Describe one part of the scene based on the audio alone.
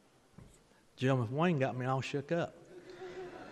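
An elderly man speaks cheerfully into a microphone.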